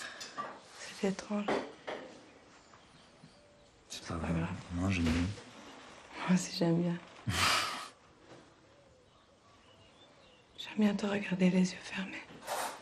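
A young woman speaks softly and warmly up close.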